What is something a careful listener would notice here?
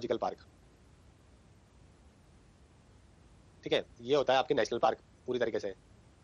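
A man speaks calmly into a microphone, in short phrases.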